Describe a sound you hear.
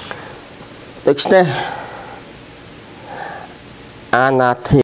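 An older man speaks calmly and close into a microphone.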